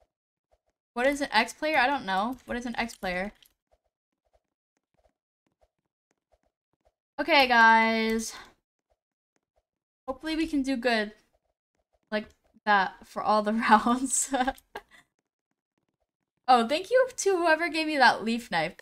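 A young woman talks with animation, close to a microphone.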